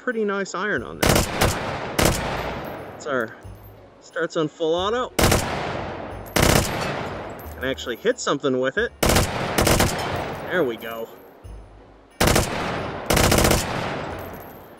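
Gunshots ring out in short bursts, each echoing away.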